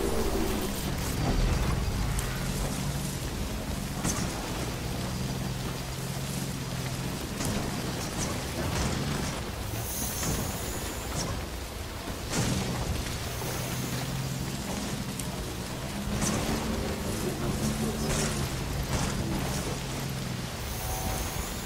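A motorbike engine hums steadily, rising and falling in pitch.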